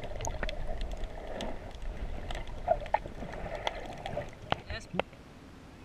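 Muffled water gurgles and rumbles underwater.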